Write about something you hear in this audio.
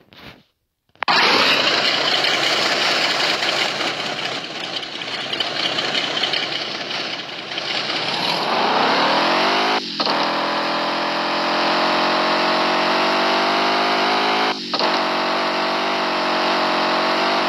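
A truck engine roars and revs up through the gears.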